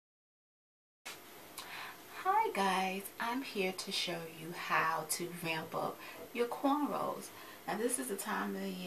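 A young woman talks with animation, close to the microphone.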